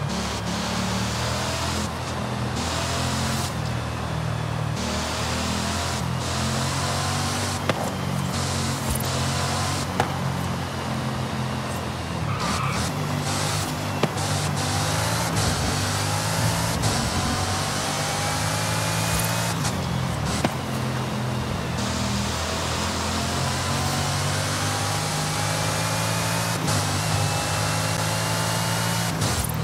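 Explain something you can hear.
A sports car engine roars at high speed, its pitch rising as the car climbs through the gears.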